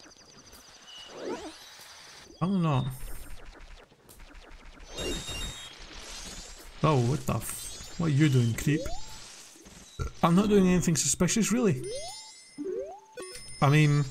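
A video game plays short chimes and sound effects.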